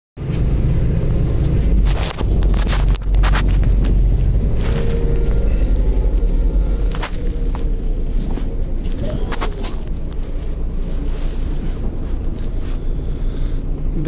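A bus engine rumbles steadily from inside the moving bus.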